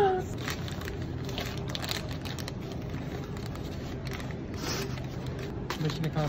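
A plastic snack package crinkles and rustles.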